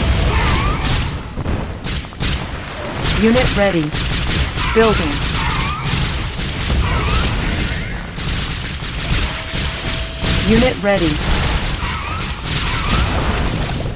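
Shells explode with low booms.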